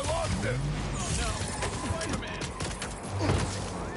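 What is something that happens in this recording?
Webs shoot out with sharp zips.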